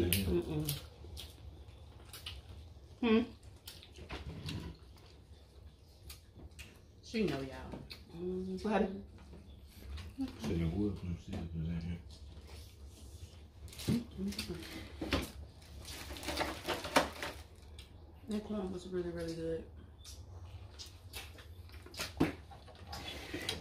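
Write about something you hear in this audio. Corn is bitten and chewed noisily close by.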